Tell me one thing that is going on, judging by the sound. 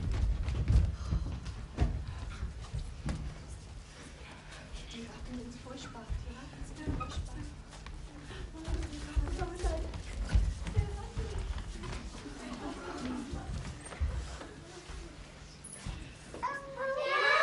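Young actors speak lines with raised voices in a large echoing hall.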